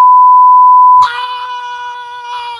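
A young woman screams.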